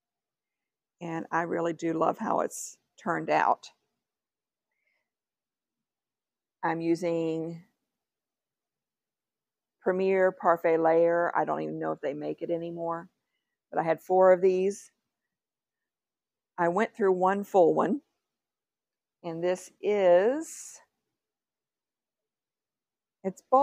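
A middle-aged woman talks calmly and closely into a microphone, in short bursts with pauses.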